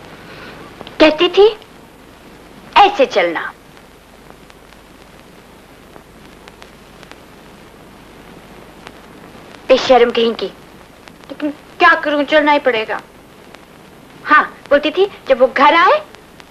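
A woman speaks anxiously in short, broken bursts.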